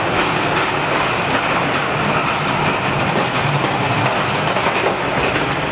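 A floor sweeper machine whirs and hums steadily in an echoing tunnel.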